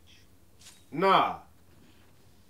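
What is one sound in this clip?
A young man shouts a drawn-out word loudly.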